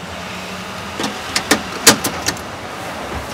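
A phone receiver clicks and clatters onto its hook.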